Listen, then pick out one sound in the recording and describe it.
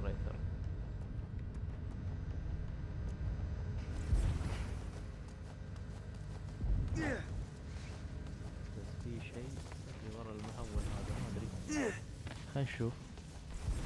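Footsteps thud and patter on a hard floor.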